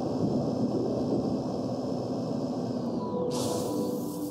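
A spaceship engine roars low and winds down as the craft lands.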